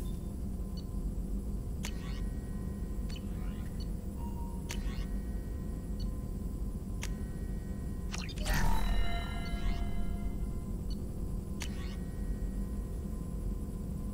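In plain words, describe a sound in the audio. Soft electronic clicks sound as menu options are selected.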